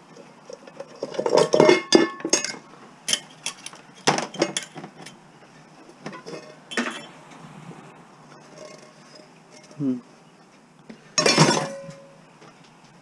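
A metal pan scrapes and clatters as it is handled.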